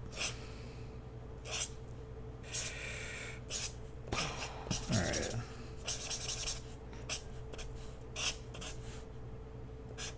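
A marker squeaks and scratches across paper in short strokes.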